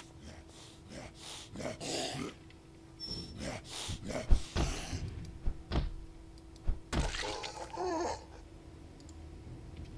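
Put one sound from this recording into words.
Heavy blows thud repeatedly.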